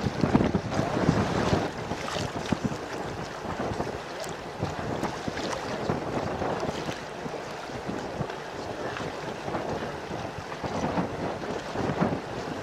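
Wind gusts roughly across the open water.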